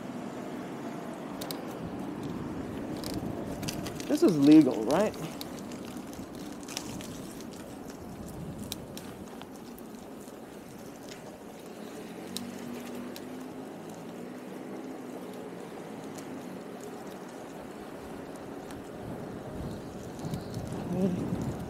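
Wind rushes past steadily outdoors.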